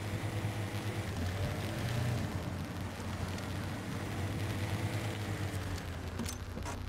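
A truck engine rumbles and strains as it crawls over rough ground.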